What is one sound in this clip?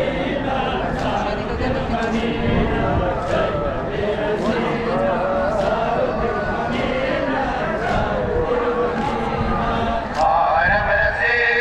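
A large crowd of men chants loudly together outdoors.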